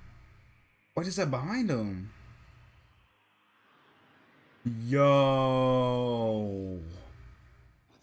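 A young man exclaims loudly and drawn out, close to a microphone.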